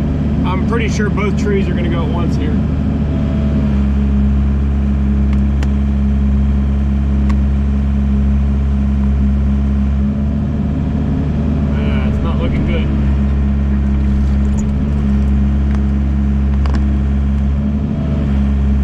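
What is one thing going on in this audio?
A heavy diesel engine hums and rumbles steadily close by.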